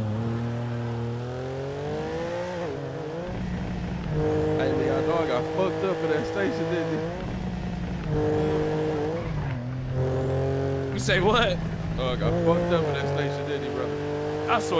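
A car engine revs and hums steadily as it drives.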